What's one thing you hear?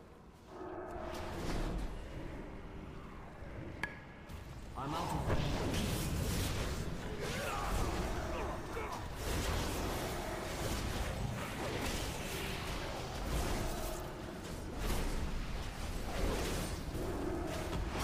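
Magic spells crackle and whoosh during a battle.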